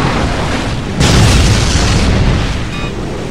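An energy gun fires with a loud, crackling blast.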